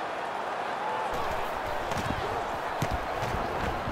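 A football is punted with a dull thud.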